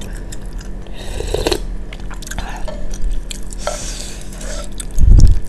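A young woman slurps noodles close to a microphone.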